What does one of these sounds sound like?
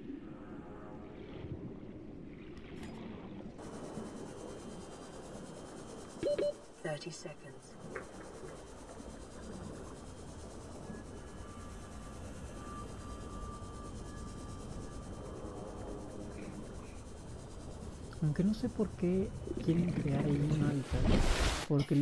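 A low muffled underwater rumble drones steadily.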